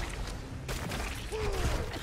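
A magical energy blast whooshes and crackles.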